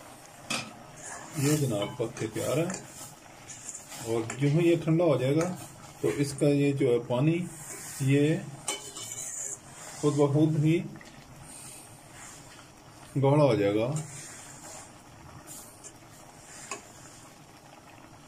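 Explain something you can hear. A metal spoon scrapes and stirs inside a pot of simmering food.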